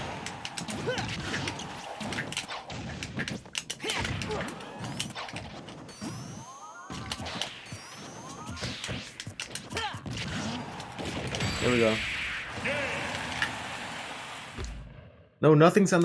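Punches, blasts and explosions from a video game crack and thump in quick bursts.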